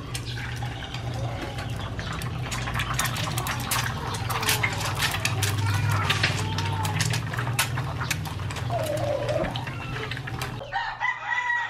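An egg sizzles and crackles in a hot pan.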